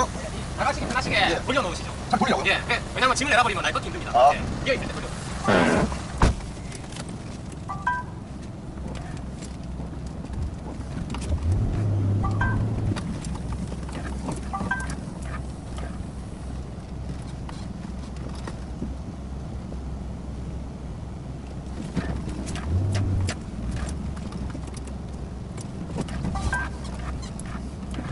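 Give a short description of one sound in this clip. A truck engine rumbles steadily.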